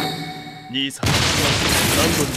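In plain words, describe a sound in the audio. A sword slash swooshes loudly.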